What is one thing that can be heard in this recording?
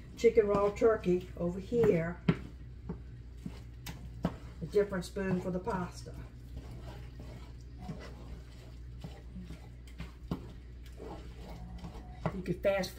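A wooden spoon scrapes in a frying pan.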